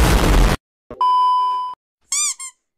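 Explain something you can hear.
A steady high electronic tone beeps.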